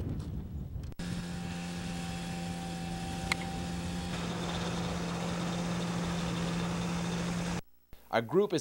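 A small aircraft engine hums steadily.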